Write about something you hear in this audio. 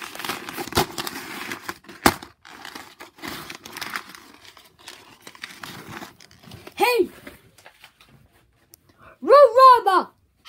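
Soft toys rustle and thump against a hard floor as they are handled.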